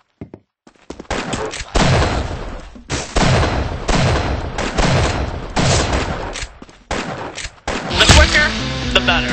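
A rifle fires loud shots, one after another.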